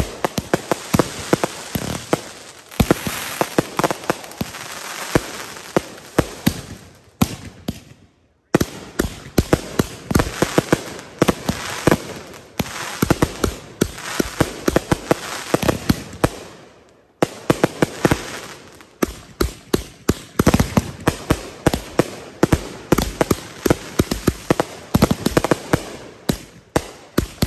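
Fireworks fountains hiss and spray sparks outdoors.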